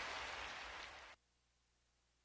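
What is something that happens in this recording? A small waterfall splashes and rushes steadily into a pool.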